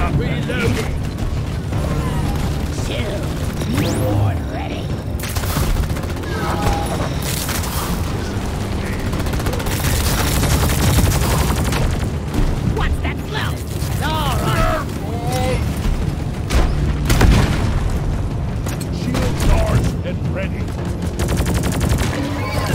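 A game gun fires rapid bursts of shots.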